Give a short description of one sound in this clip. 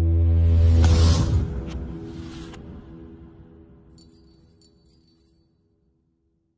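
Glass shatters with a loud crash that rings out and fades.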